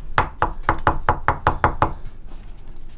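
A scraper scrapes rhythmically against a wooden board.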